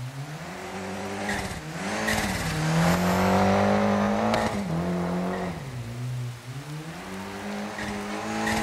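A rally car engine revs hard and shifts gears up and down.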